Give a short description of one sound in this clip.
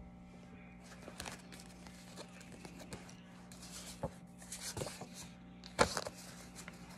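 Paper cards rustle and shuffle in hands.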